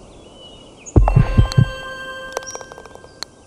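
A golf ball drops and rattles into the cup.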